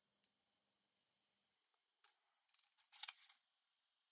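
A craft knife scrapes and slices through thin card.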